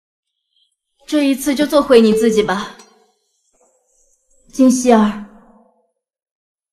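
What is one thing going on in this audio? A young woman speaks quietly and calmly.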